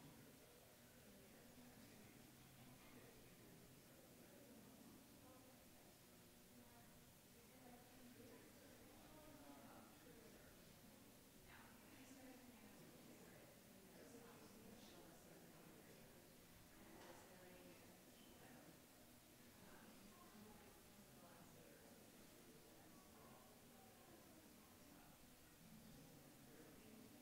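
A crowd murmurs quietly.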